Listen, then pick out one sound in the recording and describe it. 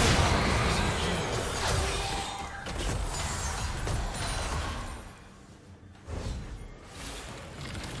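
Game spell effects crackle and boom during a fight.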